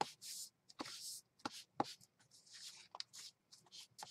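Paper rustles and slides.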